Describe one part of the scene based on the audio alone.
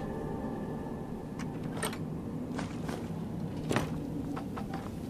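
A lock clicks and scrapes as it is picked.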